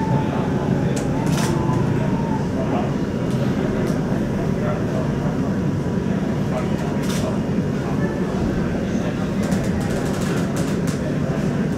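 A train's carriage rattles and clicks as it moves.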